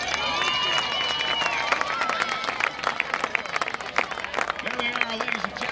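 A crowd of people cheers and shouts across an open outdoor field.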